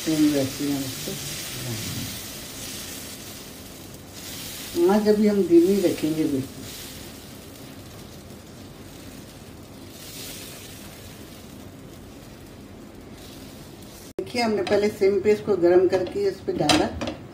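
Batter sizzles softly in a hot pan.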